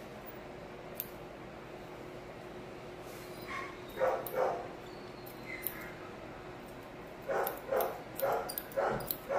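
Scissors snip through a dog's fur.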